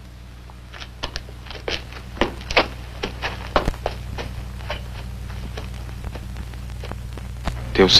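Footsteps crunch on a dirt road, walking away.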